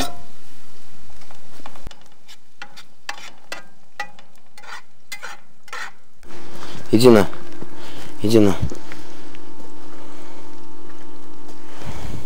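Vegetables sizzle in hot oil in a pan.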